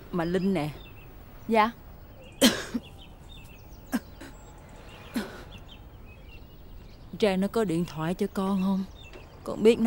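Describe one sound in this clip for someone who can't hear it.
A woman groans and moans in pain nearby.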